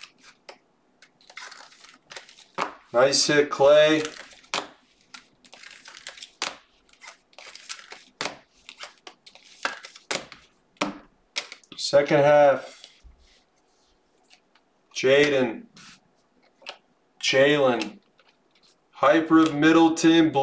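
Plastic card sleeves rustle and crinkle in hands.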